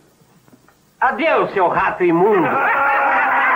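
Several men laugh loudly and jeer close by.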